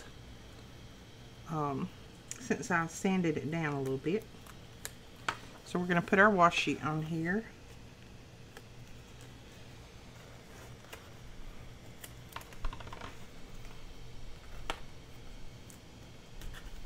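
Paper rustles softly as it is folded and handled.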